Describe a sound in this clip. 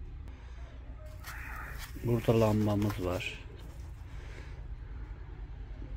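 A plastic object knocks softly as it is lifted out of foam.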